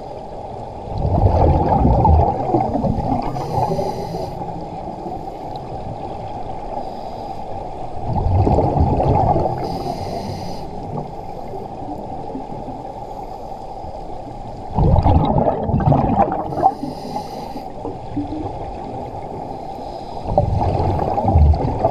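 Scuba bubbles rumble and gurgle in bursts underwater.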